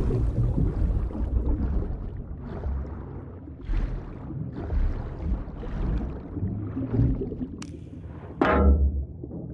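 Muffled underwater strokes whoosh in slow, regular surges.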